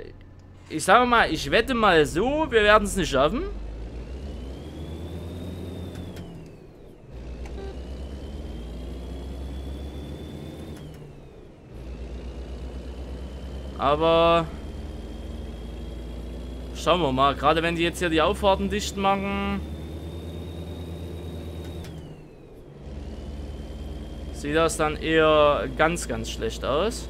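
A truck engine rumbles low and steady, dipping briefly at each gear change.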